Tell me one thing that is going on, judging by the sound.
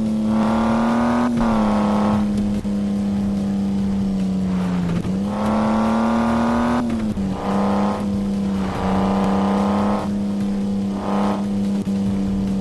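A car engine drones steadily, revving up in bursts.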